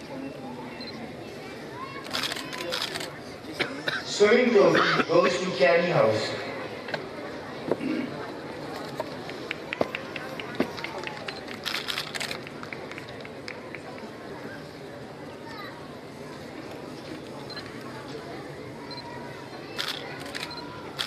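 A large outdoor crowd claps in the distance.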